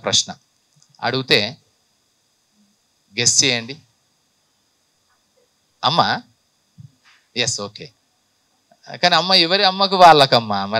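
A man speaks with animation into a microphone, in short bursts with pauses.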